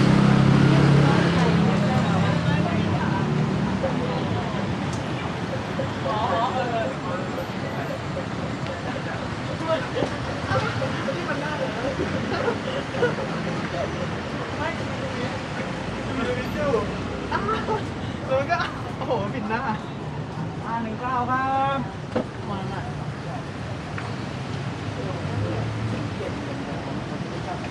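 Street traffic hums steadily nearby.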